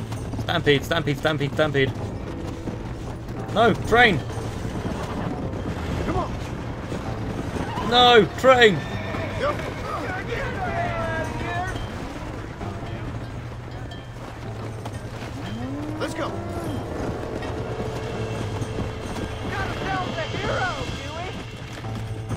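A horse's hooves gallop over dry ground.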